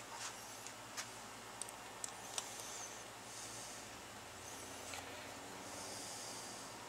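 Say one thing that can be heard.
Small metal parts click and clink in a person's hands.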